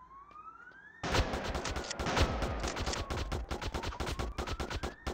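Footsteps run quickly.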